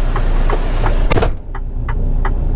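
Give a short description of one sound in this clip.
A bus door hisses and thuds shut.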